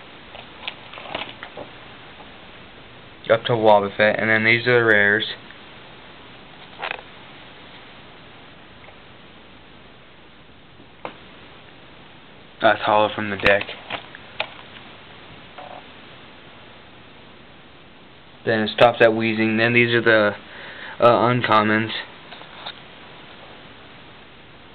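Plastic binder pages rustle as they turn.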